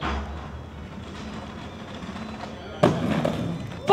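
Skates land hard on concrete with a clack.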